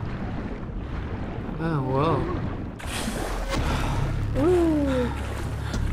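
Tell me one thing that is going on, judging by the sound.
Water splashes as a swimmer moves through it.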